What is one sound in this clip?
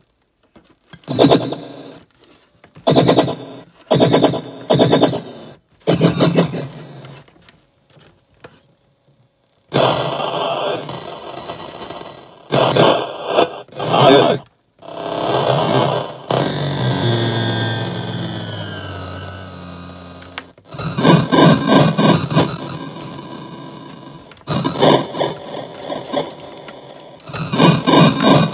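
A small loudspeaker plays crackly radio sound in short bursts.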